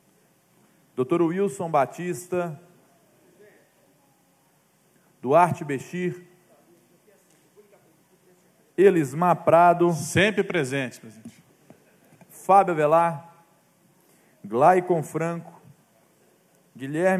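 A young man speaks calmly into a microphone in short phrases with pauses.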